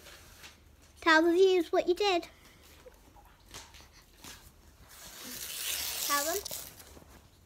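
A young girl speaks loudly in a high voice, close by.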